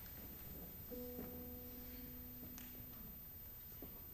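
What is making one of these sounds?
A piano plays a few notes.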